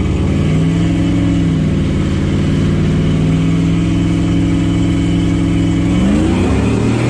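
A car engine idles loudly with a deep, steady rumble.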